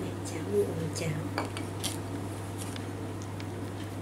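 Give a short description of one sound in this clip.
A ceramic dish clinks as a hand sets it on a table.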